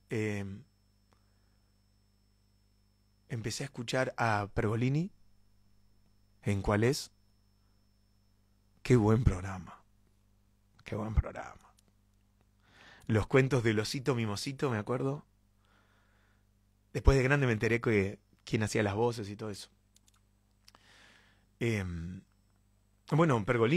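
A young man speaks expressively and close into a microphone, in short bursts with pauses.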